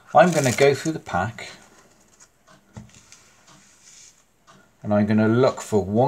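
Playing cards slide and swish across a cloth surface as they are spread.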